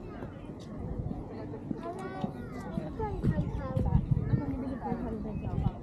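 A few adults talk at a distance.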